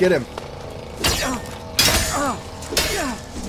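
Weapons swing and strike in a scuffle.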